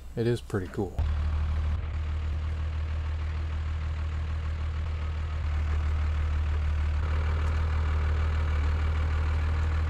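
A truck engine rumbles steadily as the truck drives slowly nearby.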